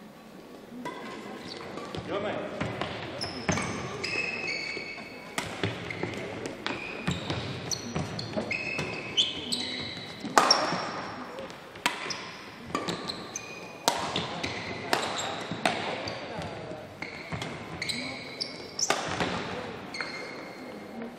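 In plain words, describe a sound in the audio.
Shoes squeak sharply on a court floor.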